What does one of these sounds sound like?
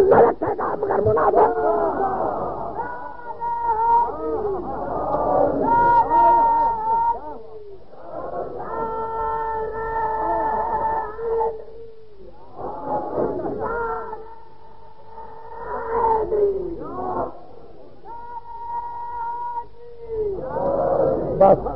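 A man chants a recitation in a drawn-out, melodic voice, heard through an old recording.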